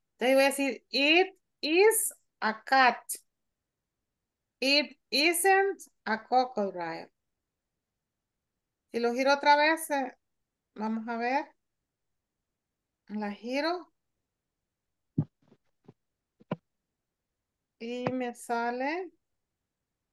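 A woman speaks clearly through an online call, in short phrases with pauses.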